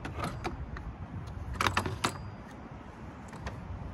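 A plastic engine cover rattles as it is lifted off.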